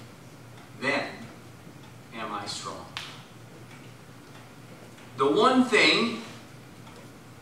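A man speaks slowly and solemnly over a microphone in an echoing hall.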